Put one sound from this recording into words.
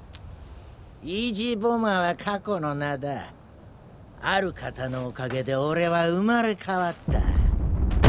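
A man speaks.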